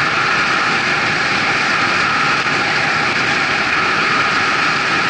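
Wind rushes loudly and steadily past a moving vehicle.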